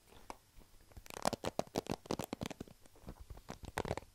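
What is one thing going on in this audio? A hairbrush scrapes over a foam microphone cover.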